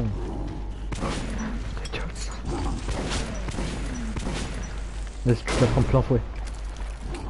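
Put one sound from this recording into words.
A gun fires single loud shots.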